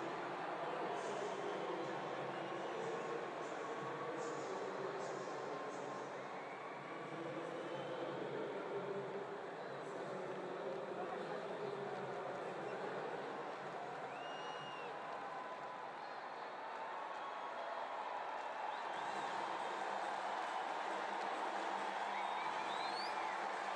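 A large stadium crowd murmurs and cheers steadily in a big open space.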